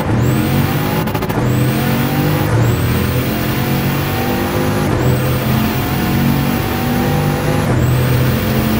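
A hypercar's gearbox shifts up through the gears, each shift briefly cutting the engine note.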